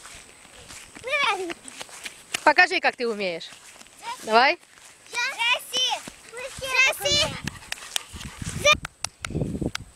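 Young children shout and squeal excitedly outdoors.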